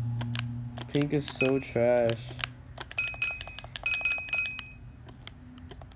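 Menu items click as they are picked.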